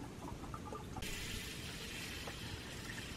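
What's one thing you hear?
Water pours into a metal pot.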